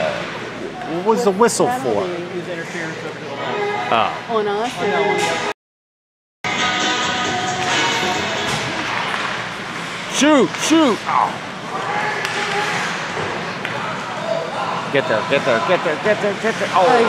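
Women and men nearby talk and call out in a large echoing rink.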